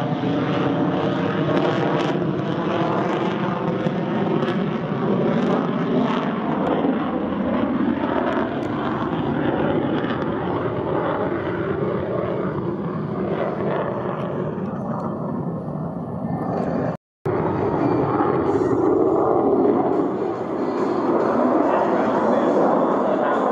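A jet roars loudly overhead, rumbling steadily.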